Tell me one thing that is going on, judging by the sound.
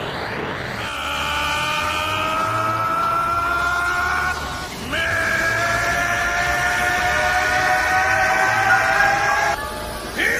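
A man screams with great strain, loud and close.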